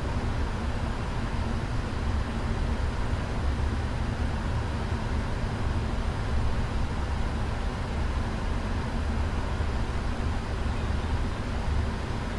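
Jet engines roar steadily with a deep, constant rumble.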